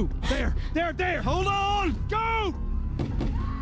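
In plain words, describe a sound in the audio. A man shouts urgently close by.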